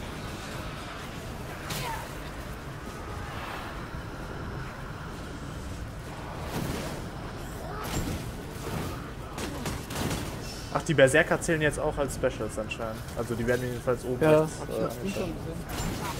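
A heavy flail swings and thuds into enemies.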